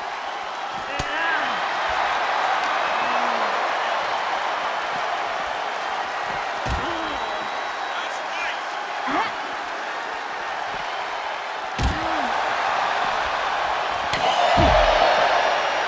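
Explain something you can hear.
Blows land with thuds during a brawl.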